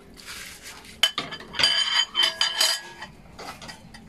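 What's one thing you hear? A metal spoon clinks against a bowl.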